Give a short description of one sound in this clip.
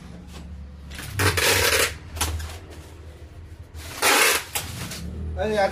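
A plastic sheet crinkles and rustles as it is handled.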